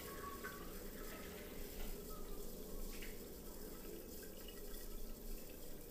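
Water splashes as a man washes his face.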